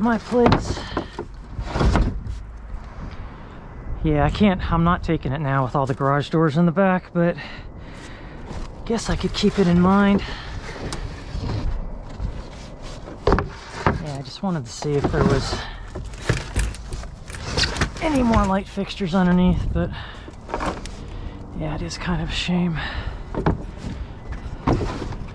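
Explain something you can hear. Wooden boards knock and clatter as they are shifted.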